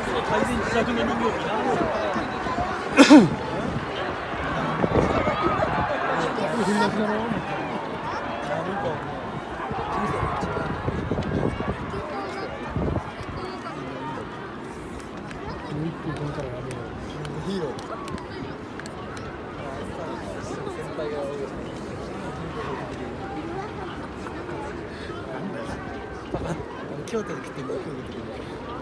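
A crowd murmurs and chatters across a large open stadium.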